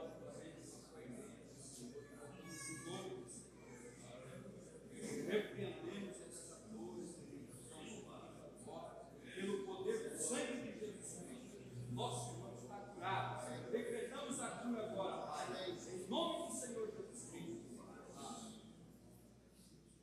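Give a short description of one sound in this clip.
A man prays aloud with fervour close by.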